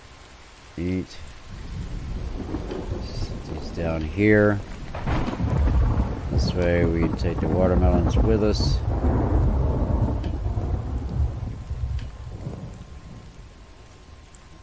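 A campfire crackles and hisses.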